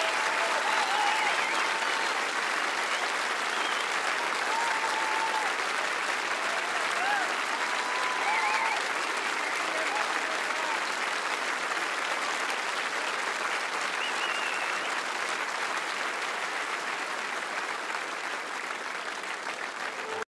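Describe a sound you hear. A large crowd applauds loudly and slowly fades.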